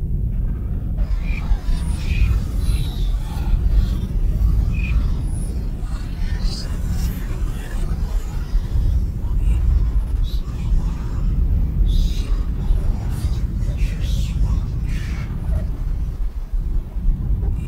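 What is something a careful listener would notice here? Scattered electronic chirps and bleeps sound over a low drone.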